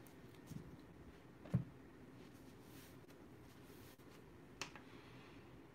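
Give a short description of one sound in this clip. Hands knock and bump against a table.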